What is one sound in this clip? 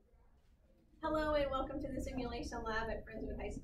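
A middle-aged woman speaks warmly and clearly, close by in a room.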